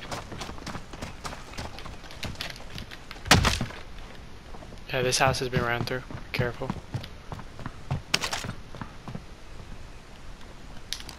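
Footsteps thud steadily on wooden floors and ground.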